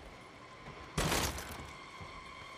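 A wooden door bangs open.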